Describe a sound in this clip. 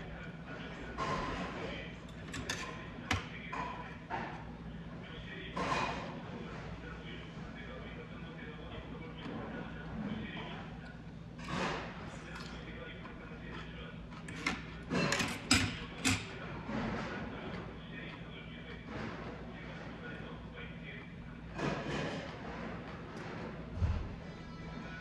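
Metal chopsticks and a spoon clink against a stone bowl.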